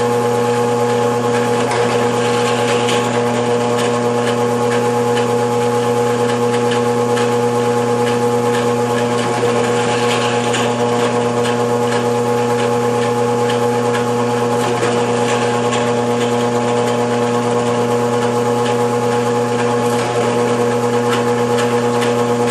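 A drill bit scrapes and chatters as it cuts into a board.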